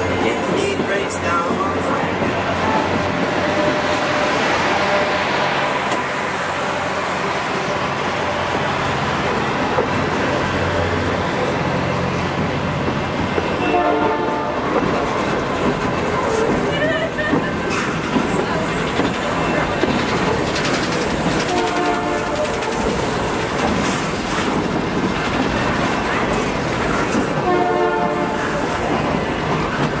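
A freight train rumbles past up close, its wheels clattering steadily on the rails.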